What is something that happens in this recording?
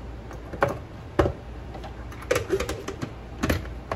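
A plastic lid snaps onto a container.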